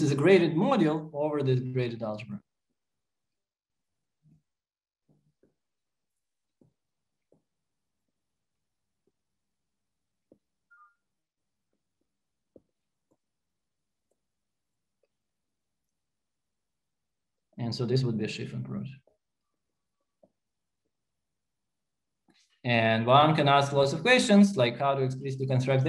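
A man lectures calmly through a microphone, with pauses.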